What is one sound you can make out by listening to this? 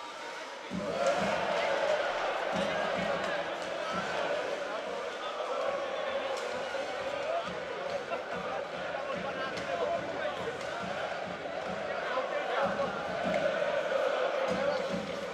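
A crowd cheers and chants in a large echoing arena.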